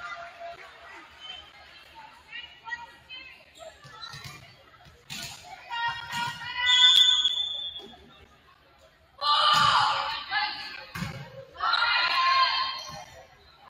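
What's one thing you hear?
A crowd of young players and spectators shouts and cheers in a large echoing gym.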